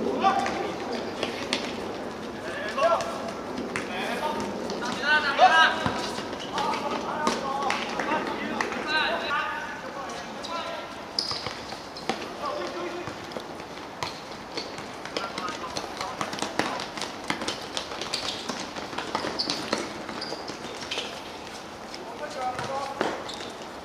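A football thuds as it is kicked.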